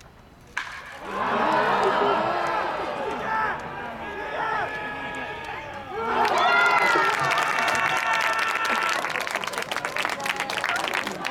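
Several men shout and call out loudly across an open field.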